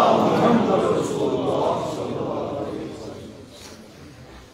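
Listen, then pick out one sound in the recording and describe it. A large crowd of men cry out and sob together in an echoing hall, slowly fading.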